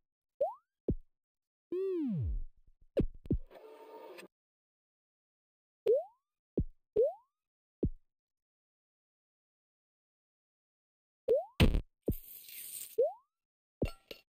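Short rising electronic blips sound as a game character jumps.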